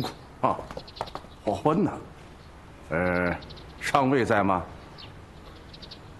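Another middle-aged man answers calmly.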